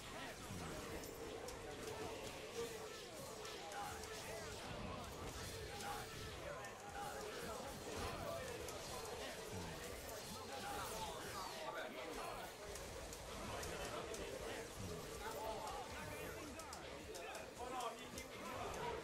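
Punches, kicks and slashes land with rapid sharp smacks and whooshes.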